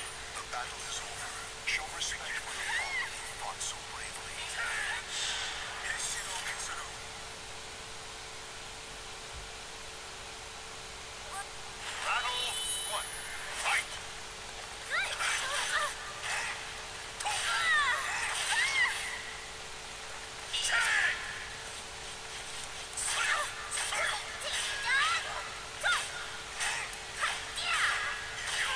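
Blades swish and clash in quick bursts.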